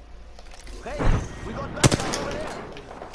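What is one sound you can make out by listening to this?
A rifle fires a few loud, sharp shots.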